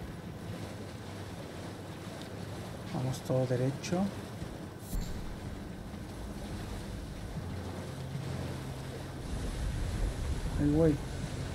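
A horse gallops, splashing through shallow water.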